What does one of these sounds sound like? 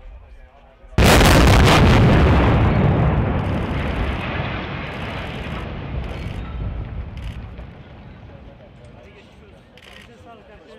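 A tall building collapses with a long, deep rumble that slowly fades.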